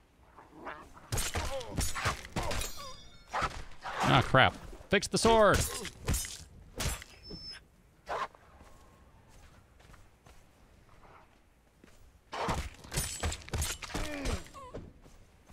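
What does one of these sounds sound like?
Hyenas snarl and yelp during a fight.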